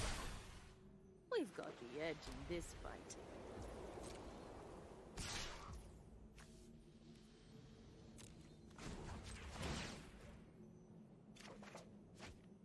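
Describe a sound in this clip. Digital chimes and whooshes play as cards are played.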